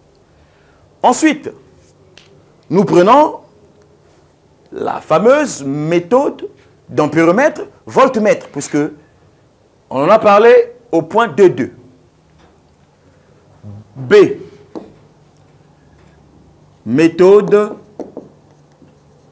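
A man speaks clearly in short phrases, close by.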